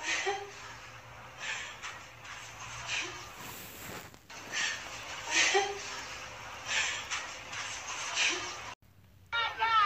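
A woman sobs loudly close by.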